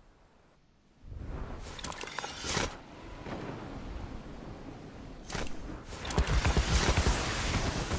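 Wind rushes steadily past during a glide down.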